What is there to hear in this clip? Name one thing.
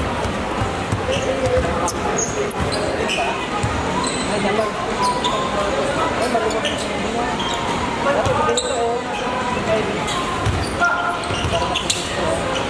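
Young men call out to each other across the court.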